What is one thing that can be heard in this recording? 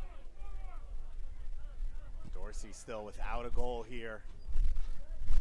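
A small crowd murmurs faintly in the distance.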